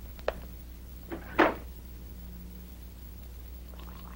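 A door clicks open.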